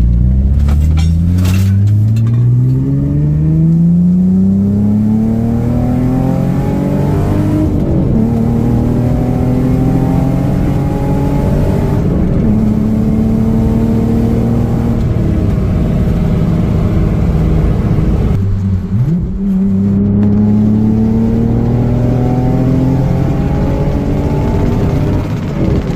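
A car engine revs hard and climbs in pitch, dropping back briefly with each gear change.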